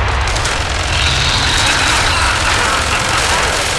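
Monsters snarl and growl close by.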